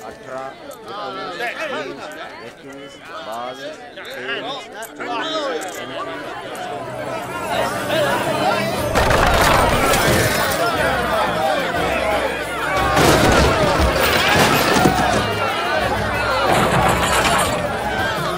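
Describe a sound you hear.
A crowd of men and women chatter and call out loudly all around.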